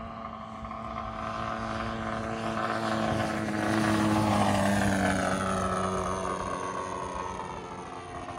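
A model plane's engine whines overhead, growing louder as it passes close and then falling in pitch as it moves away.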